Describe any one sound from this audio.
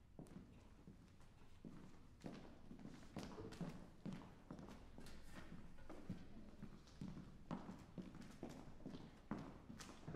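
Footsteps tap on a hollow wooden stage.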